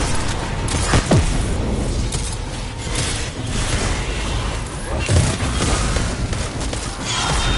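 A rifle fires single heavy shots.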